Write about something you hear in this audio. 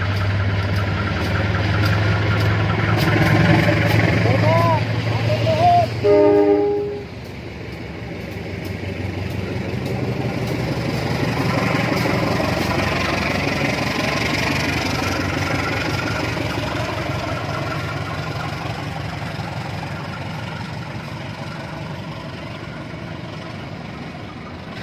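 Train wheels clatter and rumble over the rails as carriages pass.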